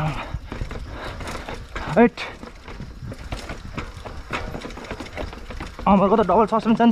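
A bicycle chain and frame rattle over the bumps.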